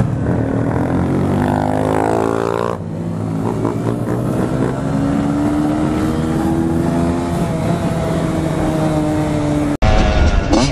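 A motorcycle engine revs up and drones steadily at speed.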